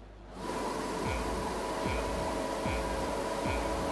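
Start lights beep at even intervals.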